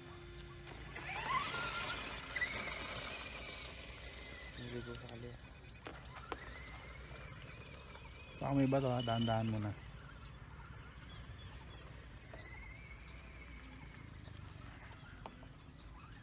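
A toy car's electric motor whines, rising and falling in pitch.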